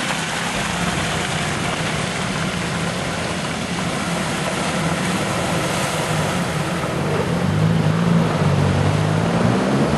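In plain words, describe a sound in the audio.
An off-road vehicle's engine rumbles and grows louder as it approaches.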